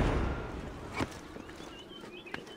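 Hands and feet scrape against a stone wall while climbing.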